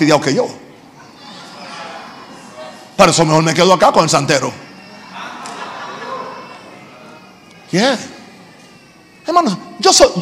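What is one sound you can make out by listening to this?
An elderly man speaks with animation through a microphone in a large echoing hall, in loud bursts.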